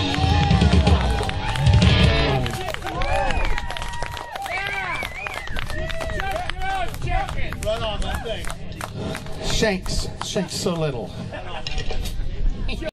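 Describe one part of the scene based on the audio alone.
A live band plays loudly through loudspeakers outdoors.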